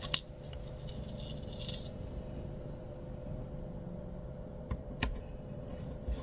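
Paper rustles and crinkles as fingers peel a sticker.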